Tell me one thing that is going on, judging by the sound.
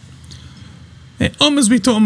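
A young woman talks into a microphone.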